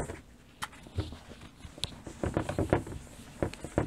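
A cloth wipes across a chalkboard.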